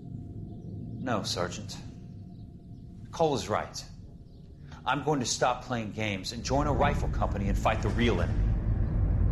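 A young man answers with feeling.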